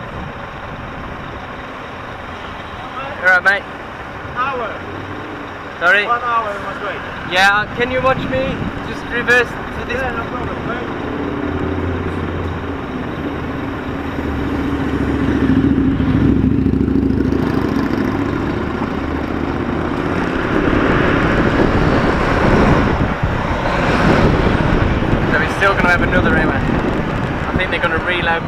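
A truck engine idles and rumbles steadily.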